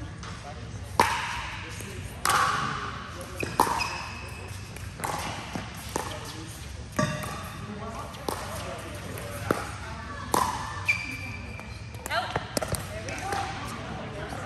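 Paddles hit a plastic ball with sharp pops that echo in a large hall.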